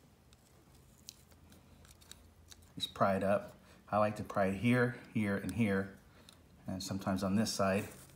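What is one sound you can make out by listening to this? A small metal tool clicks against a plastic connector.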